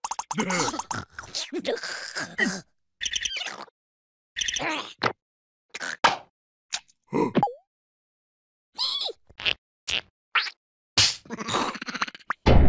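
Small cartoon creatures babble and squeak in high, silly voices, in short bursts.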